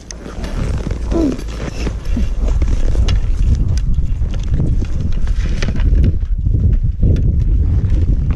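Ski poles knock and clatter.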